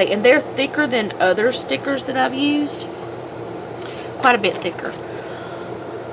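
A sheet of paper rustles as it is lifted away.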